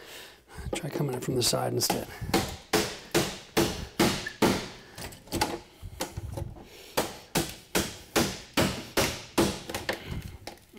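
A power drill whirs in short, quick bursts.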